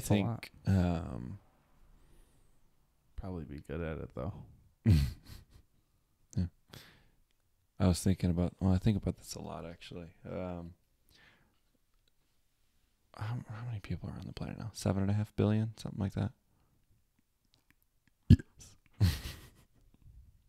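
Another man answers calmly, close to a microphone.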